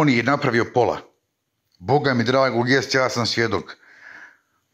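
A man speaks close to a phone microphone, with animation.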